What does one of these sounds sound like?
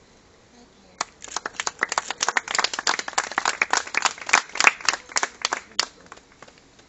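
A small group of people clap their hands.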